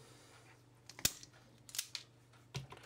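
A wire stripper clicks sharply on a wire.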